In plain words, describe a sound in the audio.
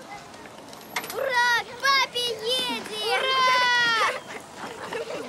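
A young girl shouts happily outdoors.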